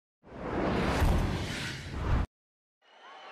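A pyrotechnic blast booms.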